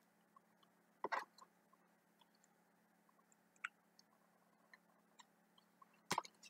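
Small plastic clicks come from a handheld device being handled.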